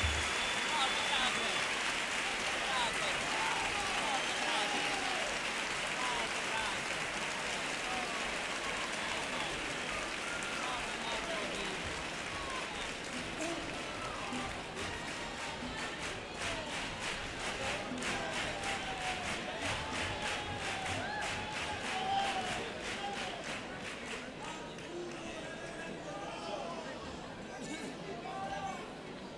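A male choir sings together in a large hall.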